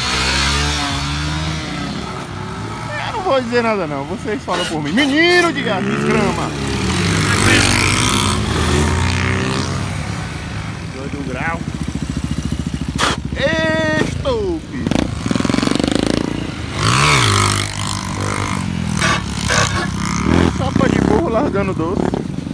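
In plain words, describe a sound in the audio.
A motorcycle engine revs loudly and roars past.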